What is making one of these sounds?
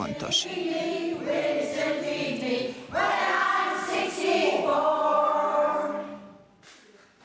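A choir of older women sings together.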